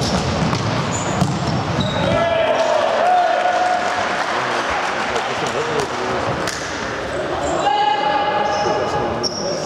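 A ball thuds when kicked.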